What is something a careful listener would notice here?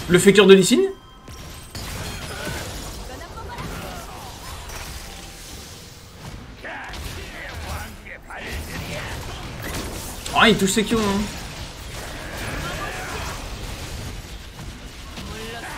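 Game spells and hits crackle and whoosh.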